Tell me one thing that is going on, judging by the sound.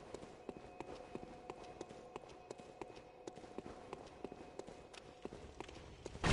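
Footsteps clatter quickly on a stone floor.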